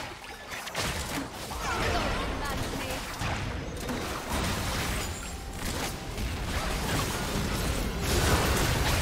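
Spell blasts and weapon clashes burst in a busy game battle.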